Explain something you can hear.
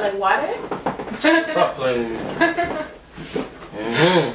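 A young woman laughs, close by.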